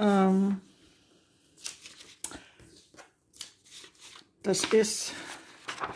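Fingers brush and rub across stiff fabric.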